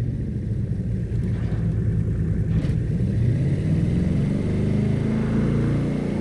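A powerful car engine rumbles low and steady.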